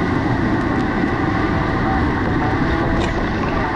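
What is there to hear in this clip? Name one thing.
Water splashes against a kayak.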